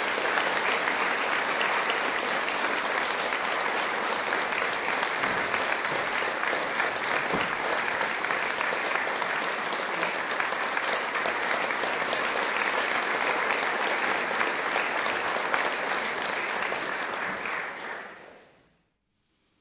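An audience applauds in a hall, then fades.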